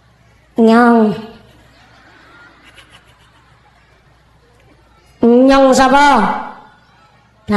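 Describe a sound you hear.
A young woman sings loud, drawn-out notes through a microphone, with a reverberant echo.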